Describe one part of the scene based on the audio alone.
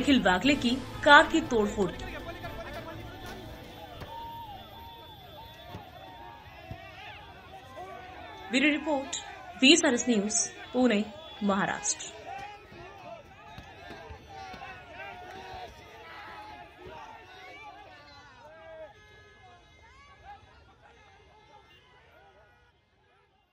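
A crowd of men shout angrily and chaotically close by.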